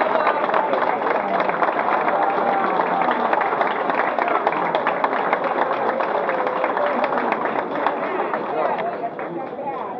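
Men clap their hands quickly in rhythm.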